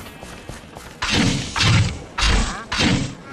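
Weapon strikes thud and crash in quick bursts.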